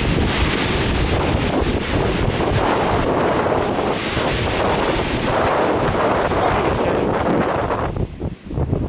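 Sea water surges and churns loudly inside a rocky hole.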